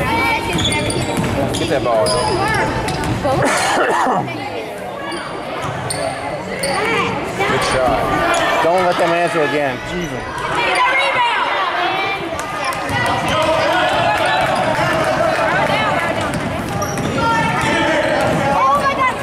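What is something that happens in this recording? A crowd of girls and adults shout and cheer in a large echoing hall.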